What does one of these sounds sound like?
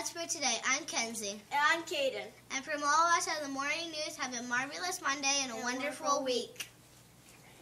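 A teenage girl speaks with animation through a microphone.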